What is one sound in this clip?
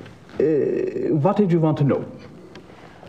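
An elderly man speaks calmly.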